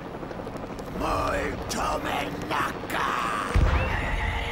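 A woman speaks dramatically, with animation.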